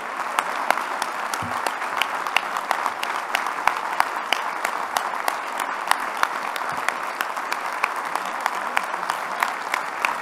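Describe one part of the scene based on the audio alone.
A large crowd applauds steadily in a big hall.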